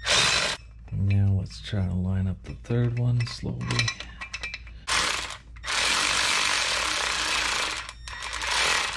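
A cordless power driver whirs in short bursts close by.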